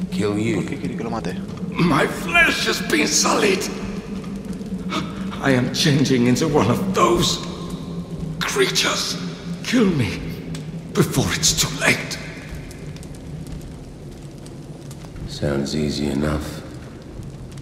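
A man speaks calmly and pleadingly from close by.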